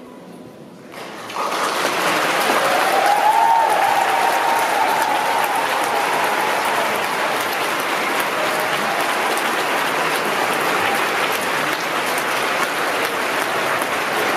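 A large audience applauds loudly in a big echoing hall.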